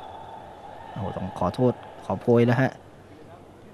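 A young man speaks briefly with animation nearby.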